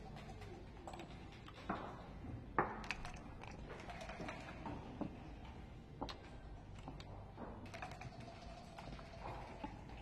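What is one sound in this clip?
Backgammon checkers click and slide on a wooden board.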